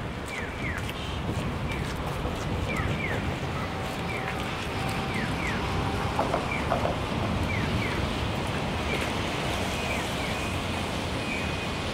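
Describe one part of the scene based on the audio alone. Cars drive by on a street nearby.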